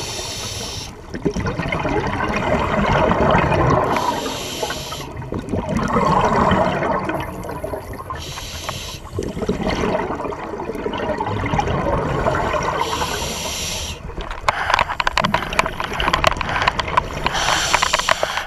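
Exhaled bubbles from a scuba regulator gurgle and rumble underwater.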